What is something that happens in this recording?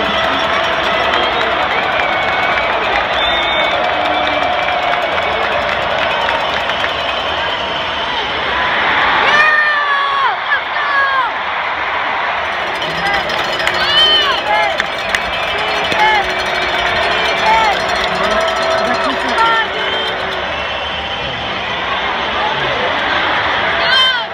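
A large stadium crowd roars and cheers all around.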